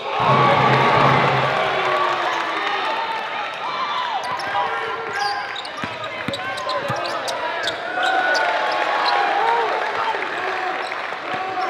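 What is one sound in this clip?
Basketball sneakers squeak on a hardwood court.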